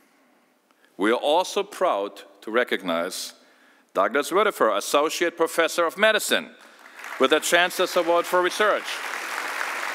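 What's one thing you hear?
A middle-aged man speaks calmly into a microphone, addressing an audience.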